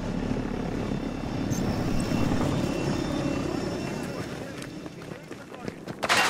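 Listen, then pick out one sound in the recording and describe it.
A helicopter engine roars loudly and then fades.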